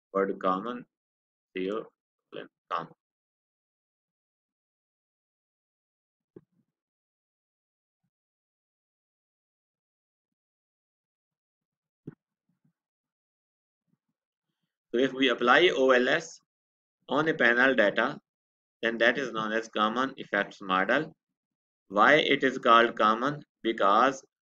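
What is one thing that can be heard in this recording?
A man speaks calmly into a close microphone, in bursts with long pauses.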